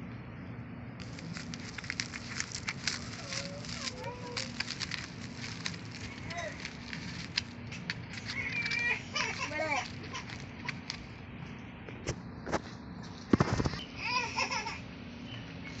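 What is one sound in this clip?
Plastic wrap crinkles as it is handled.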